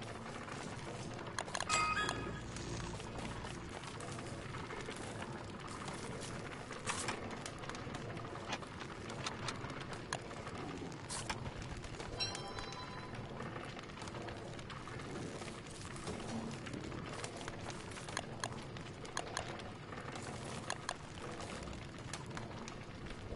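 A campfire crackles steadily.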